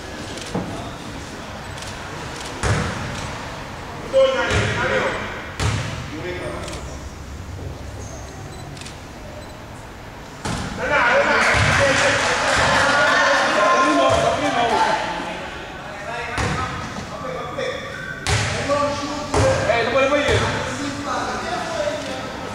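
A basketball bounces with hollow thuds on a hard floor in a large echoing hall.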